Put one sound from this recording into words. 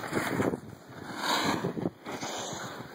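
A snowboard scrapes across snow.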